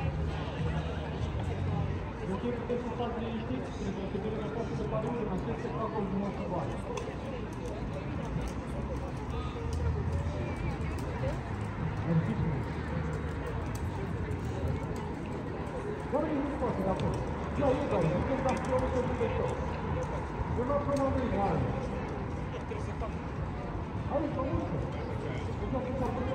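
A crowd of men and women talks and murmurs nearby outdoors.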